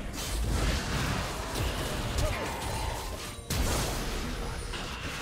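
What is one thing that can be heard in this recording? Spell effects crackle and clash during a fight in a video game.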